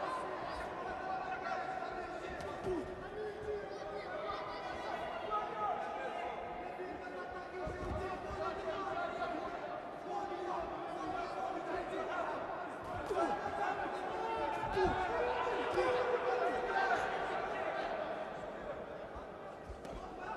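An arena crowd murmurs and cheers.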